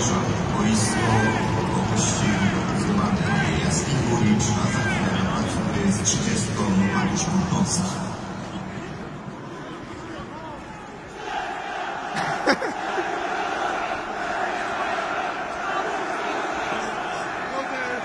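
A large stadium crowd chants and cheers loudly in a big open arena.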